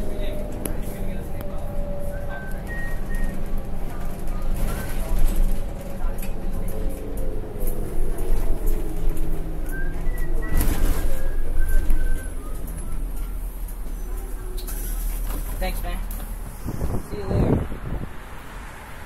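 A bus engine rumbles steadily.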